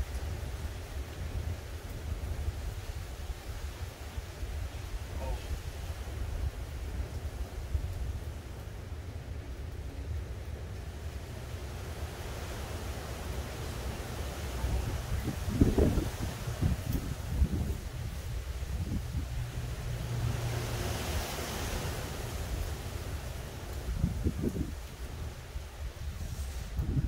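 Wind rustles the leaves of nearby trees.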